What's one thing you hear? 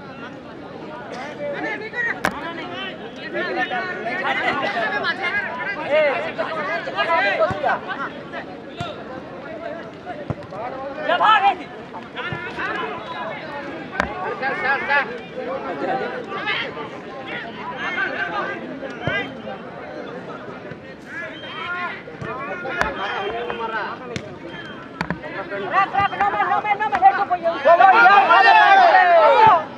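A large outdoor crowd of men chatters and shouts throughout.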